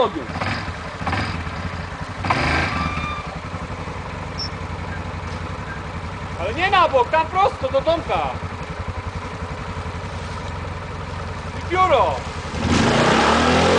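A quad bike engine idles with a low, uneven rumble.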